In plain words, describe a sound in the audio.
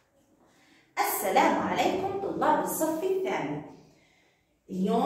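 A young woman speaks calmly and clearly close by.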